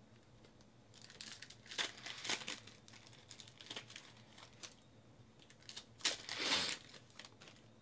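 A foil card pack crinkles and tears.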